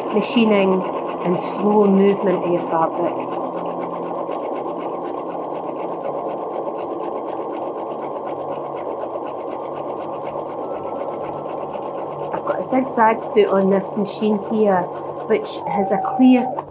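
A sewing machine runs steadily, its needle tapping rapidly.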